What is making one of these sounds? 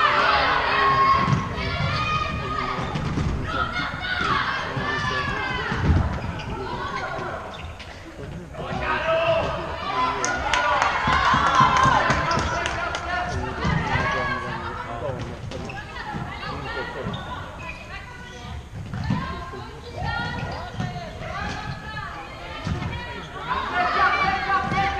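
Men and women in a small crowd chatter nearby.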